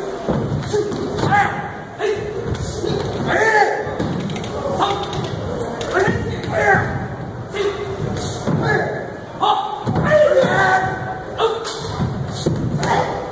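Bare feet thud and stamp on a wooden stage.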